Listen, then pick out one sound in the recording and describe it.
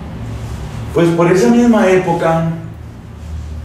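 A middle-aged man speaks calmly into a clip-on microphone.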